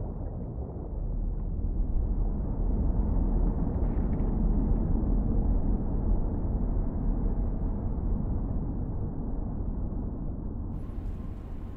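A submarine hums with a deep underwater rumble.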